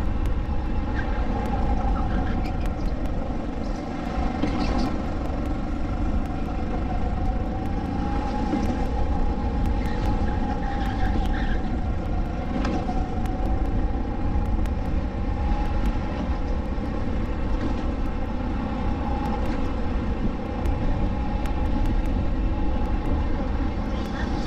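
Wind buffets the microphone.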